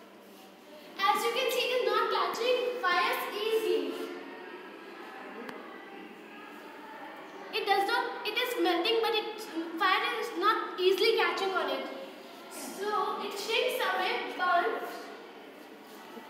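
A boy speaks clearly and steadily close by, explaining.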